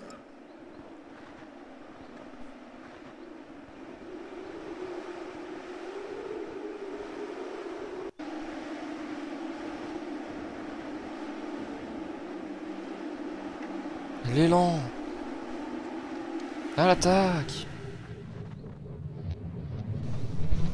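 Wind blows steadily across open snow.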